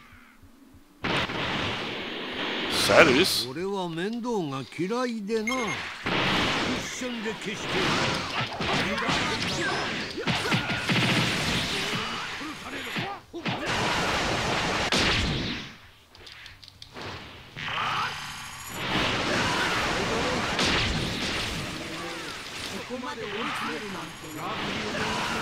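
Heavy impacts thud and crackle in quick bursts.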